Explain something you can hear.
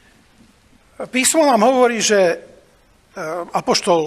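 A middle-aged man speaks with animation.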